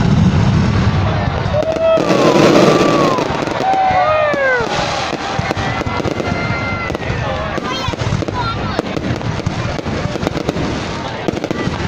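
Rockets whistle as they shoot up.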